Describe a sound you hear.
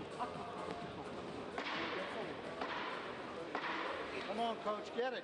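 A crowd talks and shouts in a large echoing hall.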